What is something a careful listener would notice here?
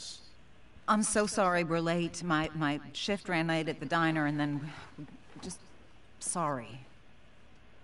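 A young woman speaks apologetically and hesitantly.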